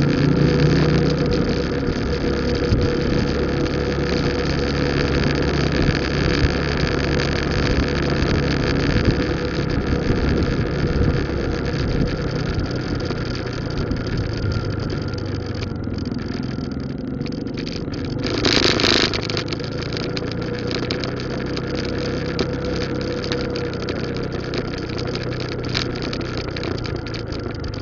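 A motorcycle engine hums steadily while riding along a quiet road.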